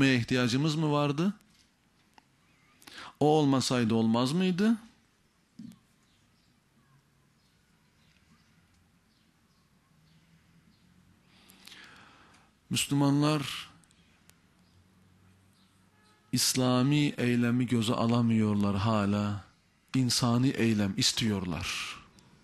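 A middle-aged man speaks emphatically into a microphone, with long pauses.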